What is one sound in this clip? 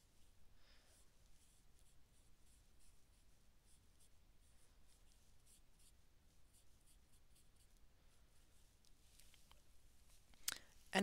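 A paintbrush brushes softly on paper.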